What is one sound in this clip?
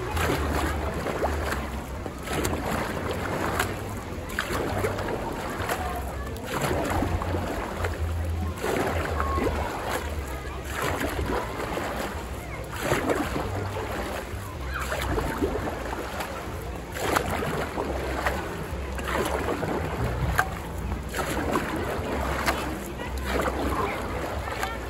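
Water splashes and churns in rhythmic surges as a hand pump is worked up and down in a pool.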